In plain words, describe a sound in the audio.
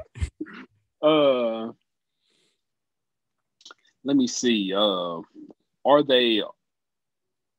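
A young man speaks with animation into a close microphone over an online call.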